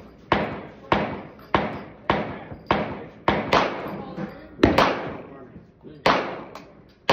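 A handheld power tool bangs sharply into a wall, again and again, each bang ringing briefly.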